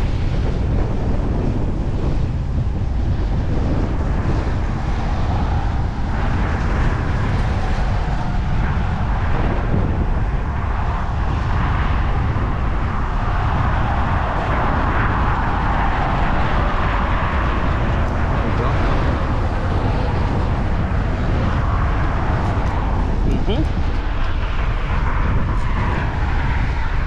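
Waves wash against the pier below.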